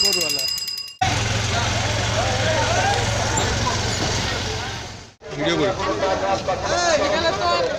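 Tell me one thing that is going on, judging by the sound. Many men talk and call out in a busy crowd nearby.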